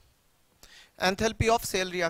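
A man speaks into a clip-on microphone, explaining with animation.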